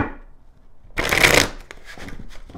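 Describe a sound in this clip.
Playing cards riffle and snap as they are shuffled close by.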